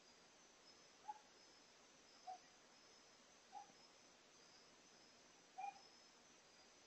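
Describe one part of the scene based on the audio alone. A cat meows briefly several times nearby.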